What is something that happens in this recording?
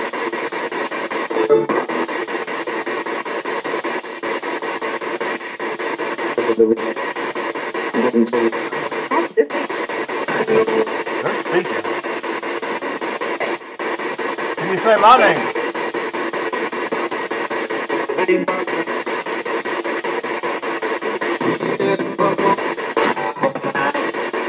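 A small radio hisses with steady static, chopped into rapid pulses as it scans through stations.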